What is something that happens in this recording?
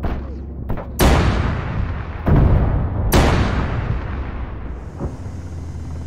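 Heavy explosions boom and rumble one after another.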